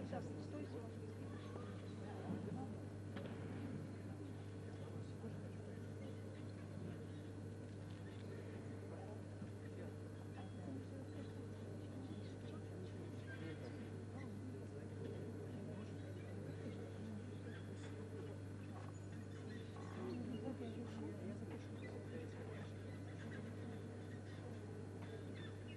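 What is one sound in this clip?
The uneven bars creak and clank as a gymnast swings on them.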